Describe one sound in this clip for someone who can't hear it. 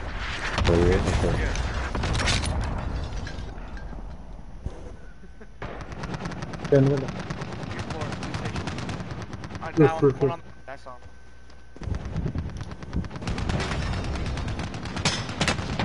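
A rifle fires sharp, loud shots now and then.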